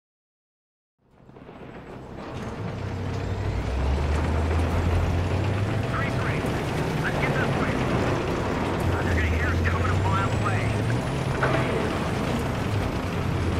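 A tank engine rumbles steadily and loudly.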